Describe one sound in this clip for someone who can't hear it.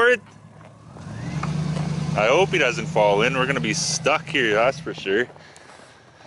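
A pickup truck's engine idles with a low rumble.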